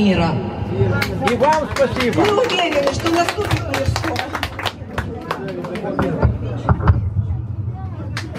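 Hands clap in a steady rhythm.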